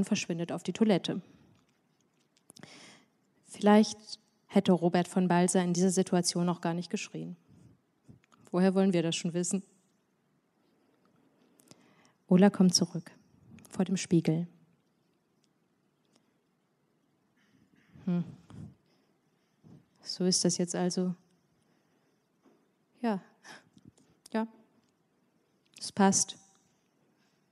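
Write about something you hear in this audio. A young woman speaks calmly into a microphone, with pauses.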